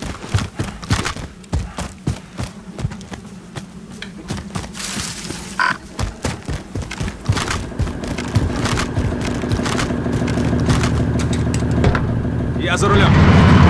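Quick footsteps crunch on gravel.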